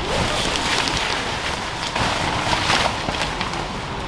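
A tent's fabric rustles as it is handled.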